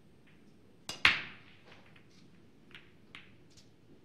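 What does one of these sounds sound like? Billiard balls scatter and clack against each other and the cushions.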